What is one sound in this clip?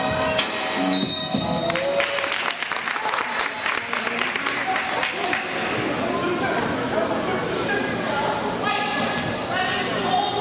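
Young players and spectators call out in a large echoing gym.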